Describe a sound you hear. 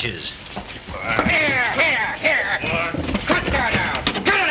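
A man speaks in a raised voice.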